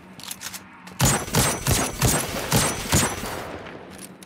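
A rifle fires several rapid shots in quick succession.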